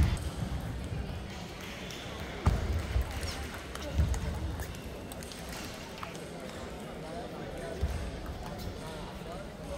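A ping pong ball clicks back and forth off paddles and the table.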